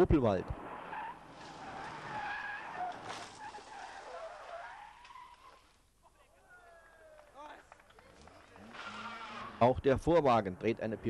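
A rally car engine revs hard as the car speeds past.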